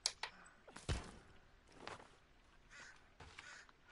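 An axe swings through the air with a whoosh.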